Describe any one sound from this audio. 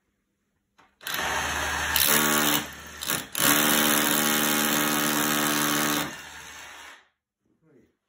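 A power drill whirs loudly as it bores into a wall.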